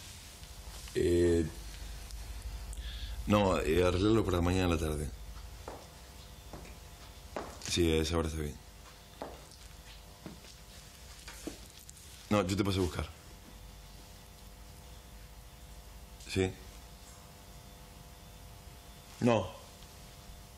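A man speaks into a phone in a low, tense voice.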